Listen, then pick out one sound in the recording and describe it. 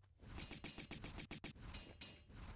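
Pistols fire rapid shots.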